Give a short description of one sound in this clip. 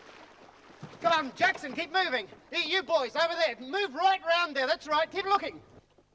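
A man shouts loudly and forcefully nearby.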